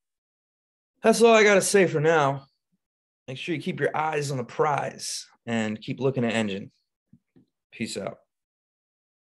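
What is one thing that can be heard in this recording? A man talks with animation through a close microphone, in short bursts with pauses.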